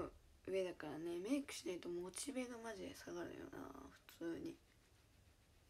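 A young woman talks close to the microphone with animation.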